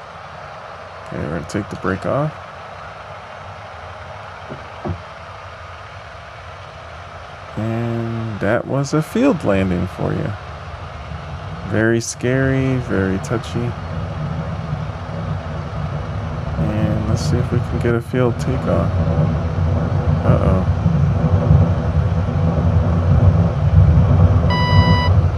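A small propeller plane's engine drones steadily and grows louder as it speeds up.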